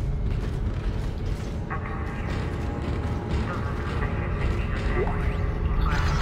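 Heavy metal boots clank on a hard floor.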